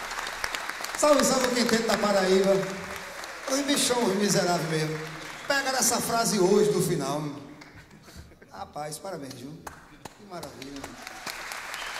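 A man sings loudly through a microphone in a large hall.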